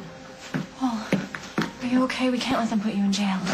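A young woman speaks with emotion nearby.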